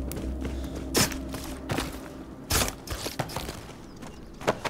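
Blows thud against a creature in quick strikes.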